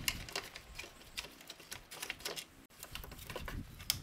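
A plastic tail light rattles as it is pulled loose.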